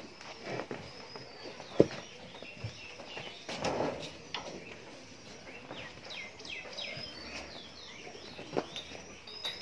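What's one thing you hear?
Cattle hooves shuffle and knock on a hard floor.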